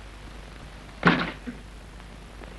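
A heavy thud sounds nearby.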